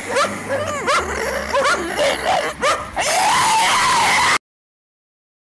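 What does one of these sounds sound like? A dog howls loudly, rising and falling.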